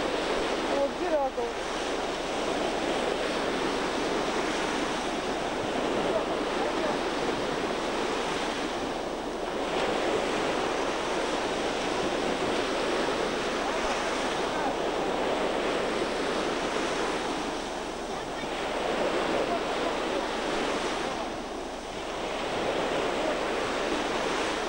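Waves wash steadily onto a beach.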